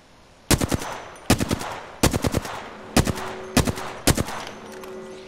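A rifle fires several loud, sharp shots in quick succession.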